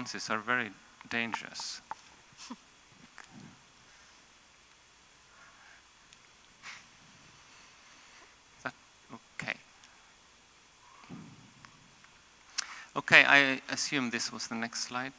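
A man speaks calmly through a microphone in a large hall, with long pauses.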